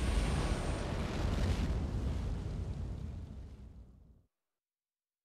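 Flames roar and crackle loudly, then fade away.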